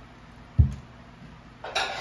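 A jug knocks as it is set down on a table.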